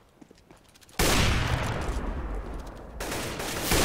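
A sniper rifle fires a single loud, booming shot.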